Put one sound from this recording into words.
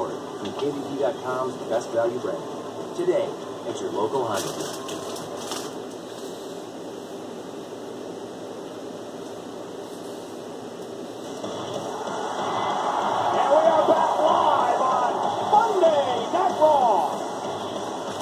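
A middle-aged man speaks casually nearby.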